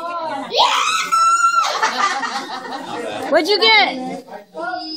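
Children shriek and squeal excitedly close by.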